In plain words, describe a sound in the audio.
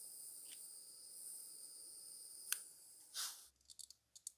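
A gas torch hisses steadily.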